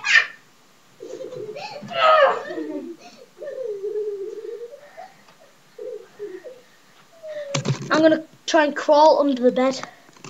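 A small child squeals and babbles.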